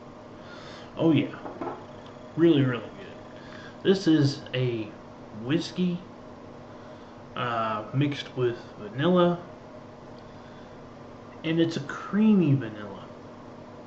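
A middle-aged man talks calmly close to a microphone.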